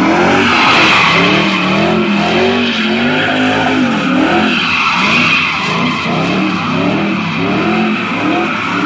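Tyres screech on pavement.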